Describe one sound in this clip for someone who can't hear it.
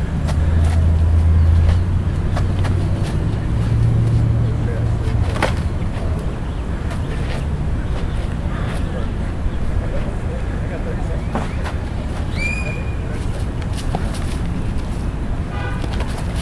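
Feet scuff and shuffle on dirt.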